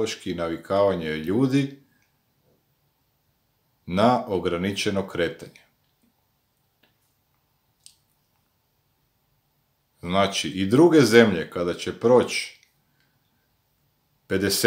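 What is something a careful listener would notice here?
A middle-aged man speaks calmly and close up, with pauses.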